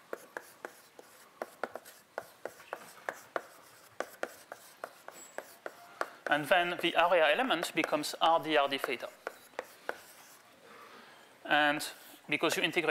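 Chalk taps and scrapes on a blackboard.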